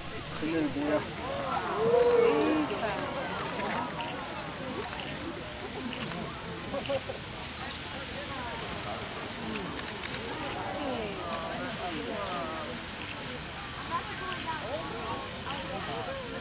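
A geyser's column of water and steam roars and hisses steadily.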